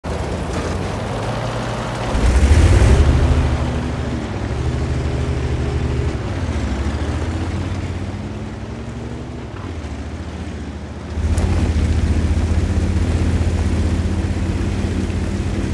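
A heavy tank engine rumbles and revs as the tank drives.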